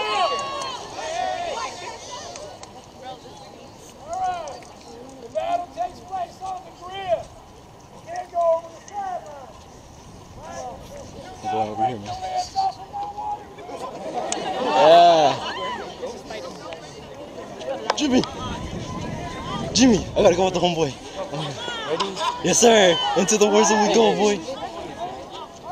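A crowd of people talks and calls out nearby outdoors.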